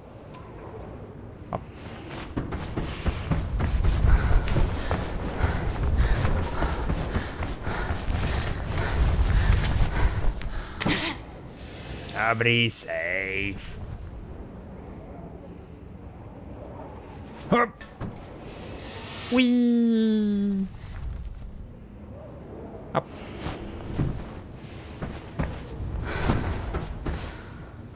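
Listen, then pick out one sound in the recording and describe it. Footsteps clang on a metal walkway.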